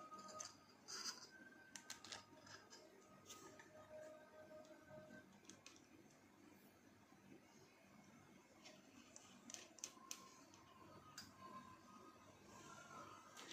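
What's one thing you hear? Small plastic parts click and rattle as hands handle them.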